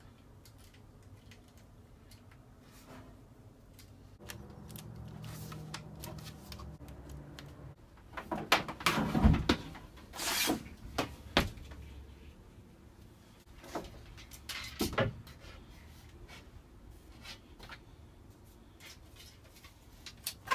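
Tools clink and knock.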